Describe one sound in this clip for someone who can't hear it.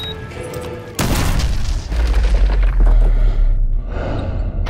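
An explosion bursts with a loud deep boom that rumbles on.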